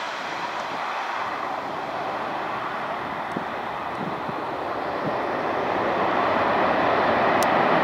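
A jet airliner's engines roar steadily and grow louder as it comes in to land.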